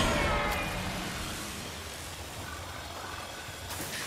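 Energy beams fire with a buzzing hum.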